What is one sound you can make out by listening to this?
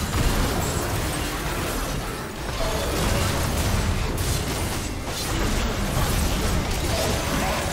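Video game spell effects crackle and burst during a fight.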